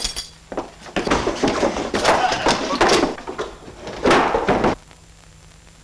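A person tumbles down a wooden staircase with heavy thuds.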